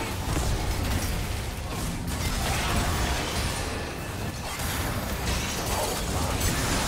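Game spell effects whoosh and crackle in a hectic fight.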